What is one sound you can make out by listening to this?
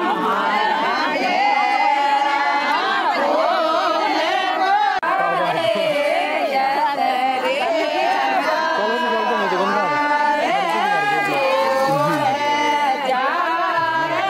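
A group of women sing together in loud, steady voices.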